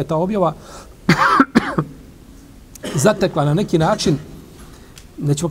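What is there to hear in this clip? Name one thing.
A middle-aged man speaks calmly and thoughtfully into a close microphone, with pauses.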